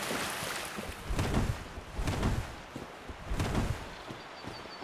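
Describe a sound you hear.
An armoured figure rolls across the ground with heavy, thudding bumps.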